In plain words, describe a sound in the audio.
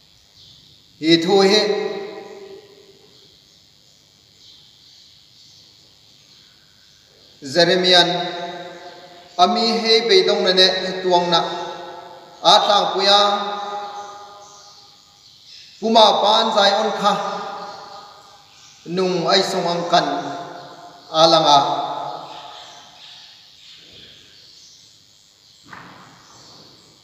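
A man speaks slowly and deliberately into a microphone, his voice echoing in a large hall.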